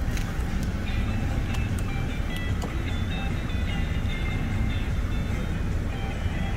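A car's electric seat motor whirs as the seat adjusts.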